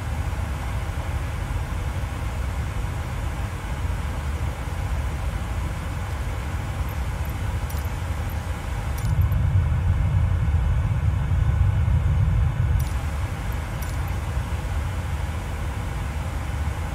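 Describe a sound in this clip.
A jet engine drones steadily, growing louder for a few seconds.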